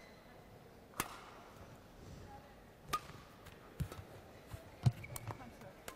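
A racket sharply strikes a shuttlecock back and forth.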